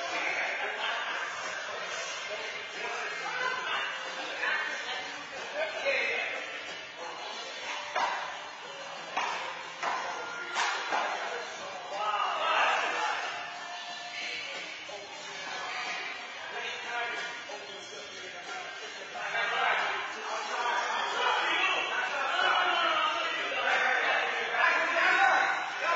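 Men talk and call out to each other in an echoing hall.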